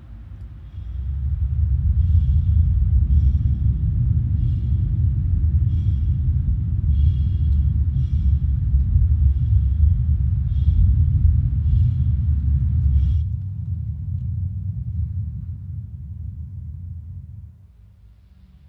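A spacecraft's engines rumble deeply and steadily.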